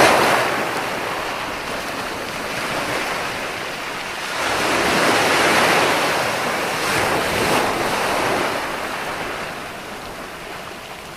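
Foamy surf hisses as it spreads over the sand.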